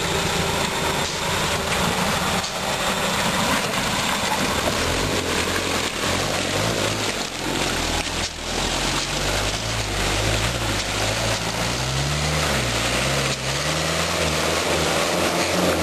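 Tyres squelch and slip through mud.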